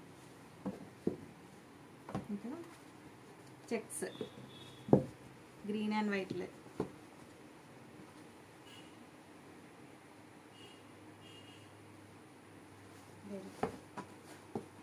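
Cloth rustles and flaps as it is unfolded and handled.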